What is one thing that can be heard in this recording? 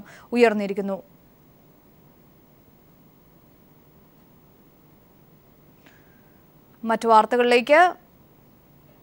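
A woman speaks calmly into a microphone, close by.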